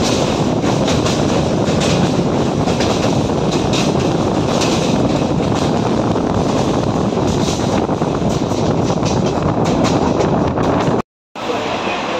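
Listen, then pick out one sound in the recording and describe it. A train rumbles and clatters loudly along the track.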